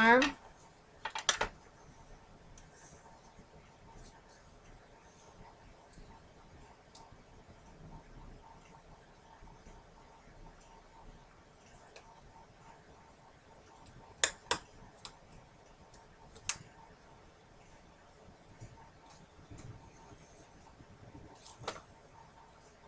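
An acrylic stamp block taps down on a table.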